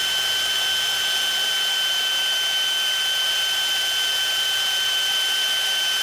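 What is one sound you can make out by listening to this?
A cordless drill whines steadily as it bores into metal.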